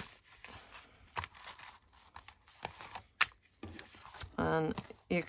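Paper pages rustle and crinkle as hands handle them.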